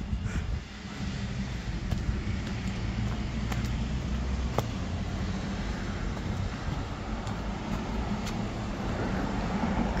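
Road traffic hums nearby.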